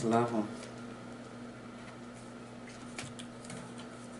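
A deck of cards is set down on a wooden table with a soft tap.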